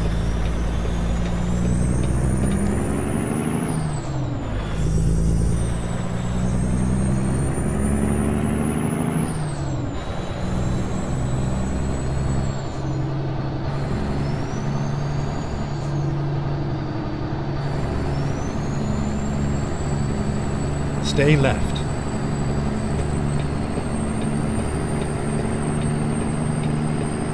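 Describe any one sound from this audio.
A truck engine drones steadily and shifts through gears, its pitch rising and dropping.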